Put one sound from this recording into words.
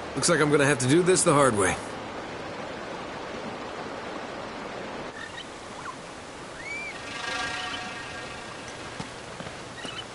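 A waterfall rushes in the distance.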